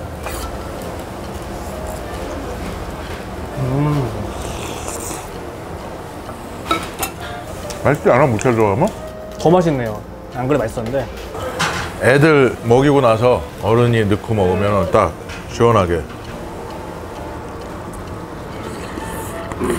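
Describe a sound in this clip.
A man slurps noodles close up.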